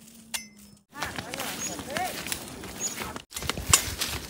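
Footsteps crunch over grass.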